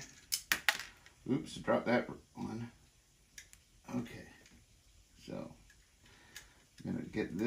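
Metal parts of a rifle click and clack as hands adjust it.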